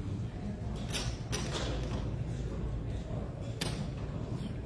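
Game pieces click on a table.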